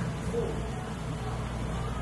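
A thick liquid pours slowly into a glass.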